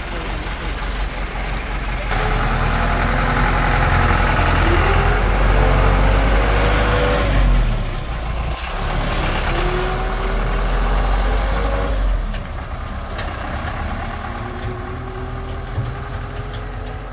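A diesel dump truck engine rumbles loudly close by and fades as it drives away.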